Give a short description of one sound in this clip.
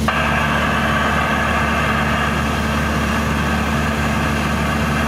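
A small plane's propeller engine drones loudly and steadily.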